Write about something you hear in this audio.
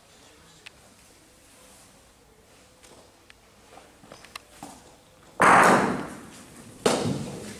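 A bocce ball rolls across a synthetic court.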